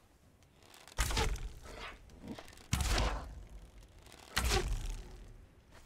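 A bowstring twangs sharply as arrows fly, several times.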